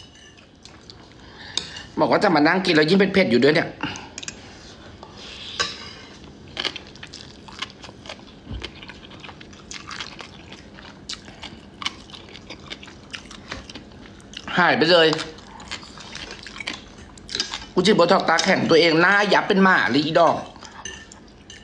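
A fork and spoon clink against a plate.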